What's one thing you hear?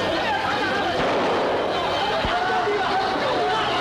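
A crowd of men and women shout excitedly.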